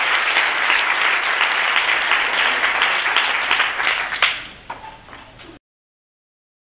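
An audience applauds loudly in a large hall, then the clapping fades away.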